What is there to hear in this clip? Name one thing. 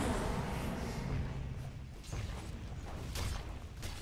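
Magic blasts and weapon blows crash in a fantasy battle.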